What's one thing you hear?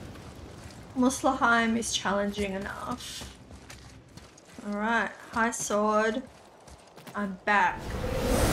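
A young woman speaks with animation close to a headset microphone.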